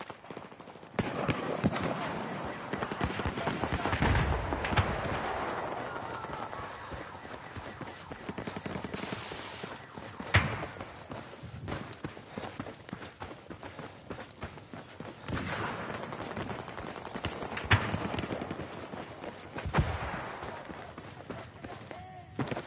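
Footsteps crunch over sand and grass.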